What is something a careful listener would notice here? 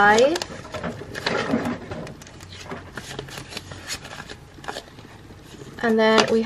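Plastic sleeves rustle and crinkle as pages are turned.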